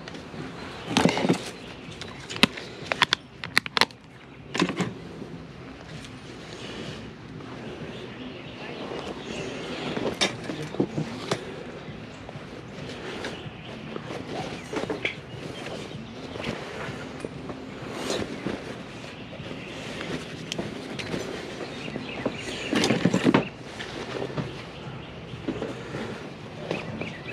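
Fabric rustles as clothes are rummaged through by hand.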